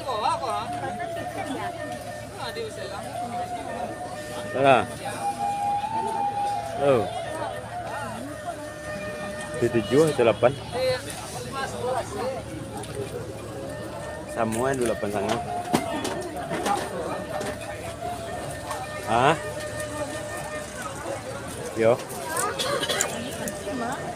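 A crowd of men talk and call out nearby outdoors.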